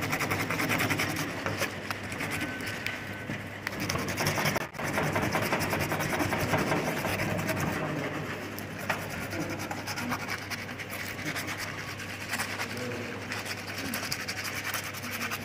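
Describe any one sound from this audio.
A scrubbing pad rubs briskly against a bone.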